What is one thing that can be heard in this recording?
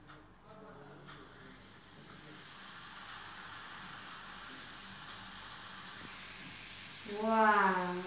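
Liquid pours steadily into a container.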